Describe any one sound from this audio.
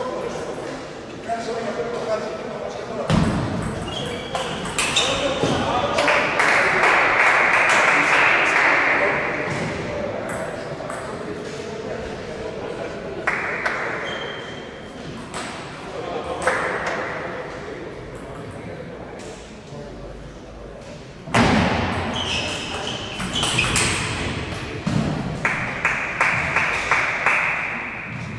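A table tennis ball clicks back and forth on paddles and the table in an echoing hall.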